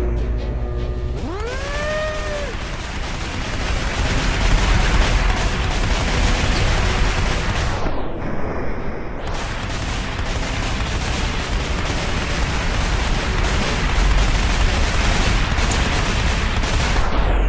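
A laser gun fires in a continuous roaring blast.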